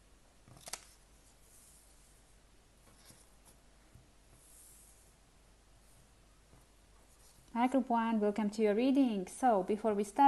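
Cards slide and tap softly on a tabletop.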